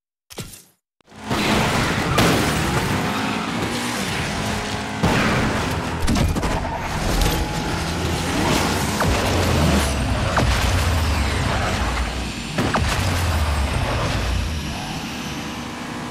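A racing car engine roars at high speed.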